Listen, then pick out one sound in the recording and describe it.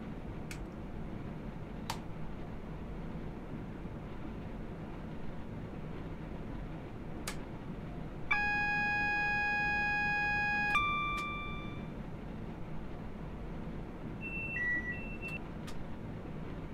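Switches click in a train cab.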